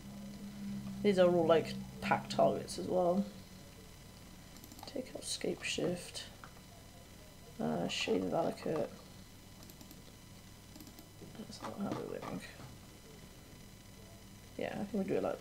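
A young woman talks calmly into a microphone, close by.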